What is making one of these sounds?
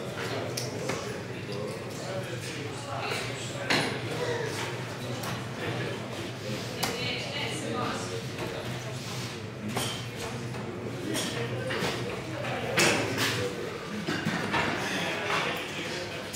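Darts are pulled out of a dartboard with a scrape.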